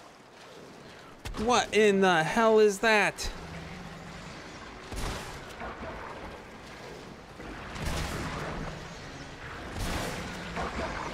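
Gunshots boom and echo down a tunnel.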